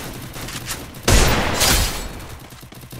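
A gun fires a few sharp shots.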